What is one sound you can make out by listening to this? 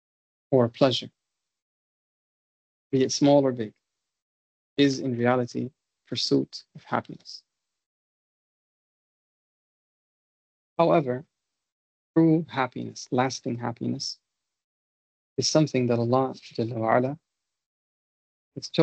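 A man speaks calmly in short phrases over an online call, with pauses between them.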